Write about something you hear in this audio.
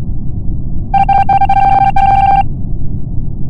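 A steady electronic tone hums briefly.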